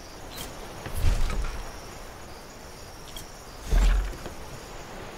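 Heavy wooden thuds sound as building pieces are placed.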